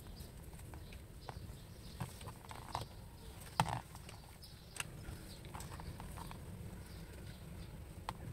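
A plastic cable rustles as it is handled.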